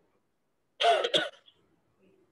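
A man coughs close to a microphone.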